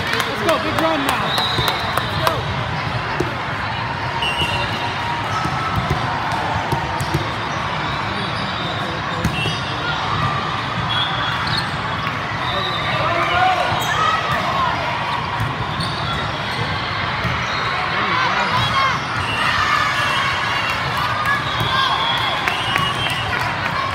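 A large crowd chatters and calls out in a big echoing hall.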